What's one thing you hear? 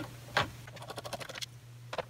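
A screwdriver turns a screw with faint clicks.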